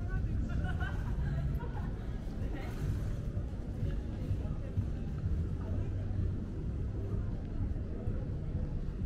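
Distant voices murmur in a busy street.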